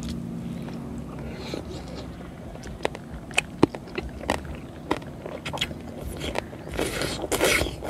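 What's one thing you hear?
A man slurps and chews food noisily.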